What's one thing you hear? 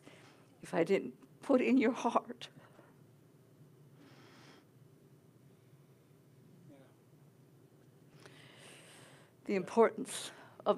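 An elderly woman speaks through a microphone in a large room, pausing between phrases.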